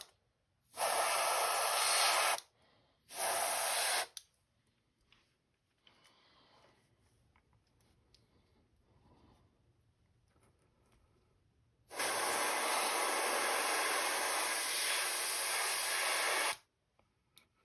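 An airbrush hisses in bursts of spraying.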